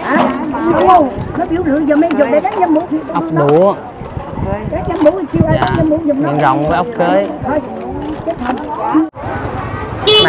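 Shells clatter against each other in a plastic basket.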